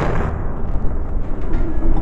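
Metal grinds and scrapes.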